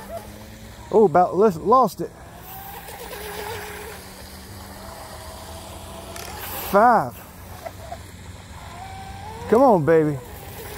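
A small model boat motor whines across the water.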